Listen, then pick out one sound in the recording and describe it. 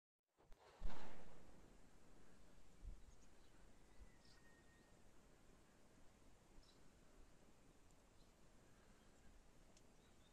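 Wind blows softly outdoors, rustling tree branches.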